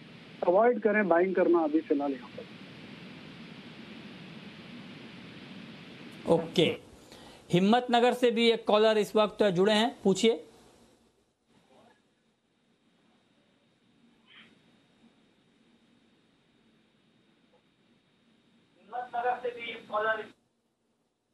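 A man speaks calmly over a microphone.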